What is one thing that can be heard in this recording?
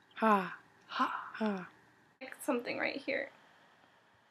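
A young woman screams.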